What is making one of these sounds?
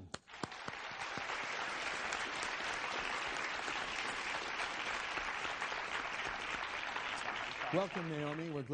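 A studio audience applauds loudly.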